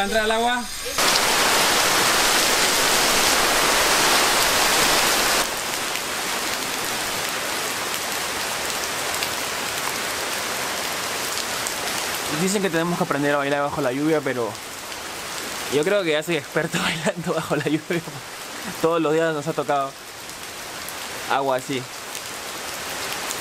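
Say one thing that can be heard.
Heavy rain pours steadily onto leaves outdoors.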